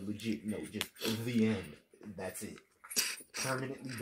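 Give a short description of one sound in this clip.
A man chews and slurps food close up.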